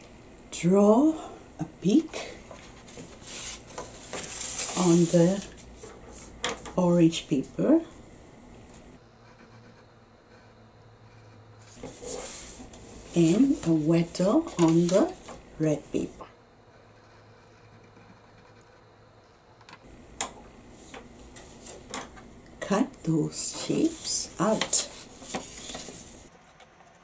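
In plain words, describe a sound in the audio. A middle-aged woman speaks calmly and clearly close by.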